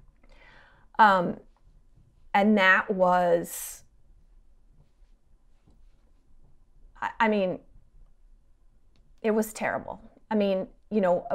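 A middle-aged woman speaks calmly in short phrases into a microphone.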